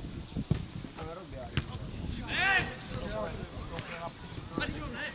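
Men shout across an open football pitch outdoors, at a distance.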